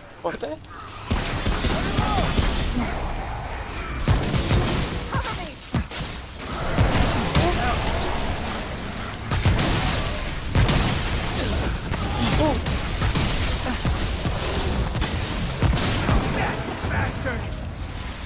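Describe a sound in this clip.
Blasts boom and rumble.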